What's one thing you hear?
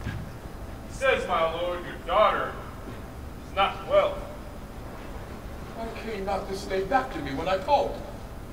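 A man speaks loudly through a microphone in a large echoing hall.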